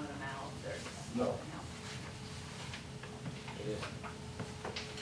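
Papers rustle as they are turned.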